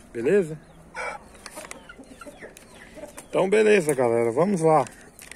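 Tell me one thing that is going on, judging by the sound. A rooster crows loudly nearby.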